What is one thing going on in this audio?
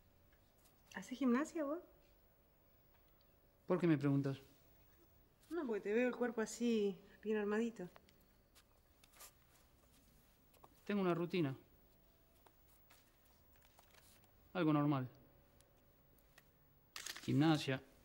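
A woman speaks calmly nearby.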